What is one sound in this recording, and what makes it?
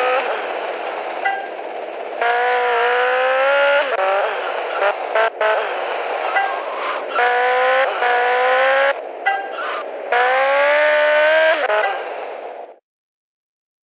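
A motorcycle engine revs and whines, rising and falling as it speeds along.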